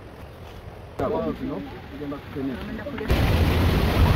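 Several young men talk with animation close by.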